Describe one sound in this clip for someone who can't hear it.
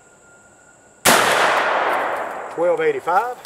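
A rifle fires a single loud shot that echoes outdoors.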